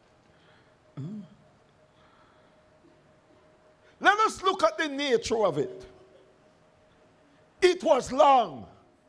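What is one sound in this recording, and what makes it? An older man speaks with emphasis into a microphone, in bursts separated by pauses.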